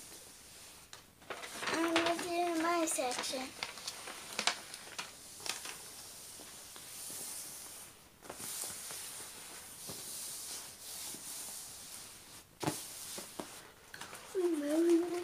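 Plastic film crinkles and rustles as hands smooth it flat.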